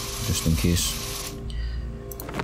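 Water sprays in a hissing jet.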